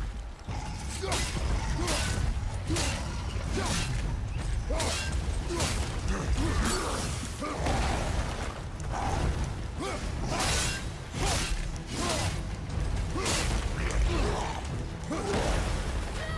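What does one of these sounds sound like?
Heavy blows land with loud thuds and crashes as fighters clash.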